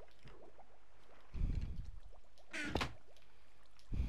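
A wooden chest creaks shut.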